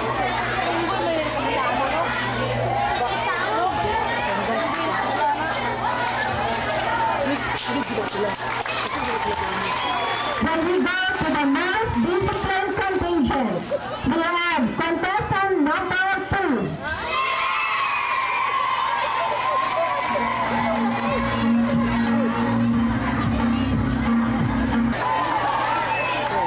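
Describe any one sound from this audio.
A woman speaks through a loudspeaker, announcing.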